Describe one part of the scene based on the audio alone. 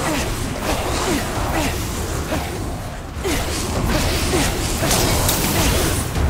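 Loose papers flutter and rustle through the air.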